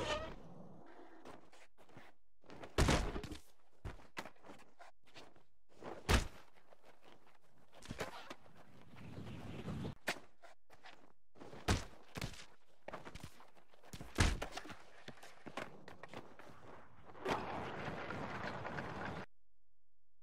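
Skateboard wheels roll over rough concrete.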